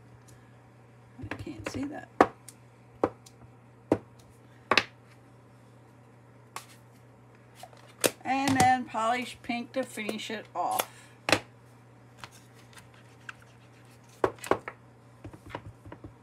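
A small stamp taps repeatedly on an ink pad.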